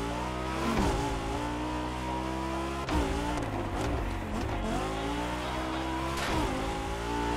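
A sports car engine roars and revs, dropping in pitch at each gear change.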